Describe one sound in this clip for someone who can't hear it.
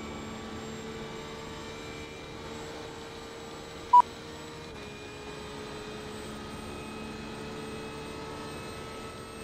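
A racing car engine hums steadily at high speed and shifts pitch once.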